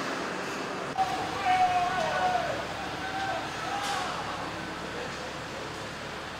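A forklift whines as it drives past in a large echoing hall.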